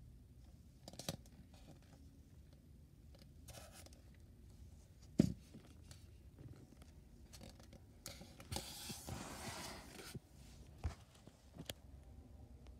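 A hollow plastic mask knocks and scrapes as a hand handles it.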